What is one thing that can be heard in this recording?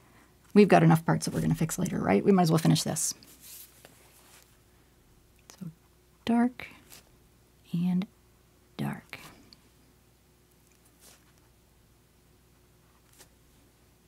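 A paintbrush strokes softly across canvas.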